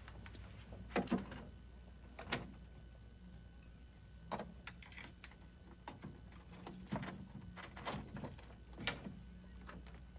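A door handle rattles and clicks.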